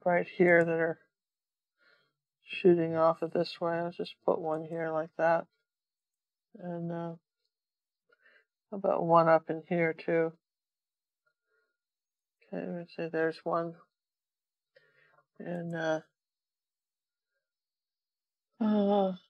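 An older woman talks calmly close to a microphone, with pauses.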